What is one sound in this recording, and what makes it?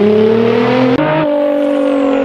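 A twin-turbo V6 sports car engine blips on a downshift.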